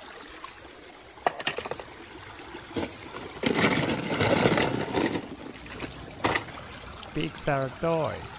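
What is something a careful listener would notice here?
Shallow water trickles over stones.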